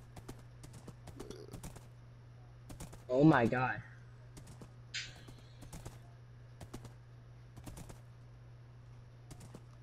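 A horse's hooves clop softly.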